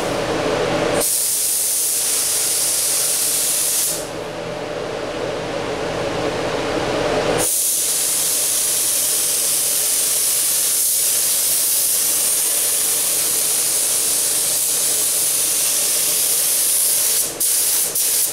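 A spray gun hisses loudly in long steady bursts.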